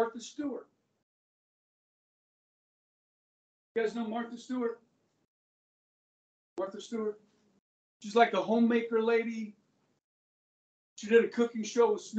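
A middle-aged man speaks with animation, in short bursts with pauses.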